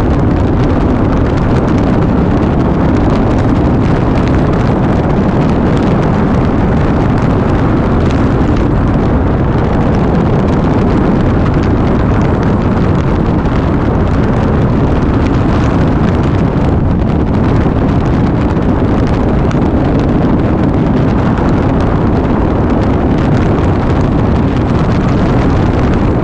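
Wind roars loudly and steadily past a moving motorcycle.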